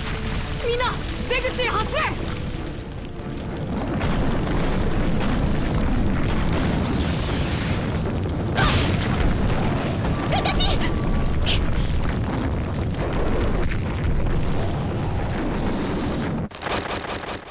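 Rocks rumble and crash heavily.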